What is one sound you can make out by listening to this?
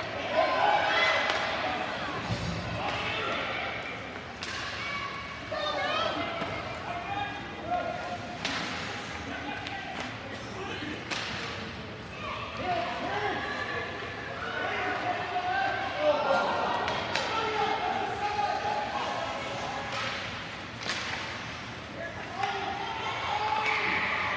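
A crowd of spectators and young players shout and cheer in a large echoing arena.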